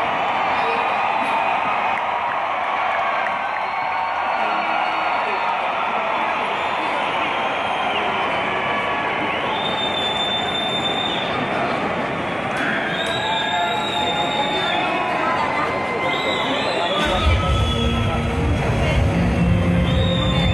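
A huge crowd cheers and shouts in a vast open stadium.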